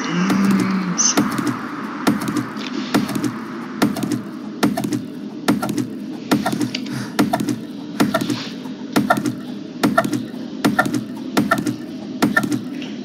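An axe chops into a tree trunk with repeated sharp thuds.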